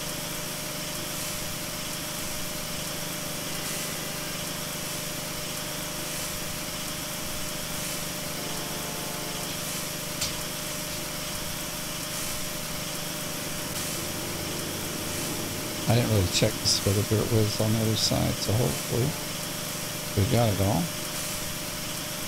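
A pressure washer sprays water in a steady hiss.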